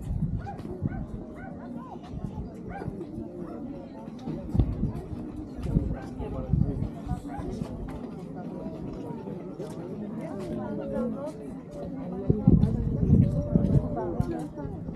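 Several men and women chatter nearby outdoors.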